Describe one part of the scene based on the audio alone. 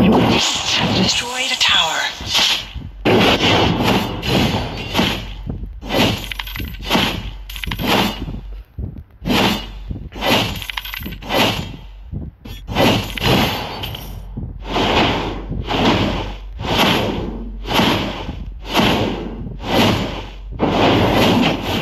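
Magic blasts whoosh and burst.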